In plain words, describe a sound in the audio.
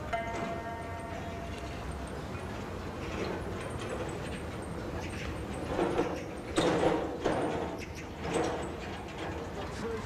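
A rickshaw's wheels roll softly over paving stones.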